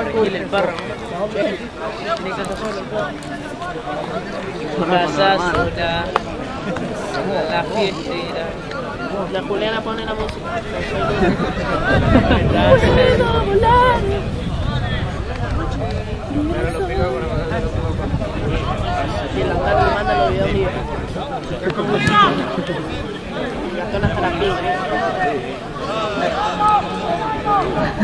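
A crowd of spectators cheers and shouts outdoors across an open field.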